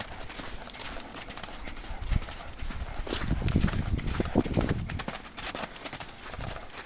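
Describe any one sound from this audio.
A horse's hooves thud on soft ground as it canters.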